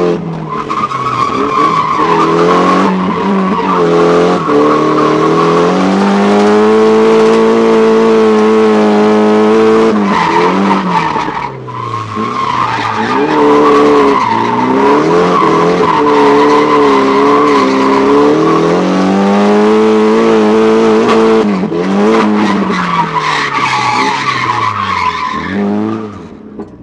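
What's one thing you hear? Tyres squeal loudly as the car drifts.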